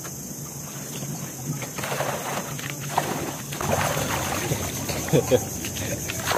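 Water sloshes as a man wades through it.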